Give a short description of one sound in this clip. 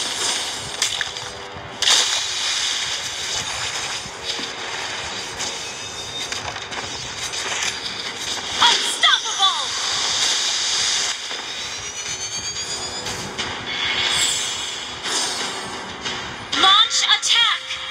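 Game sound effects of magic attacks whoosh and crackle throughout.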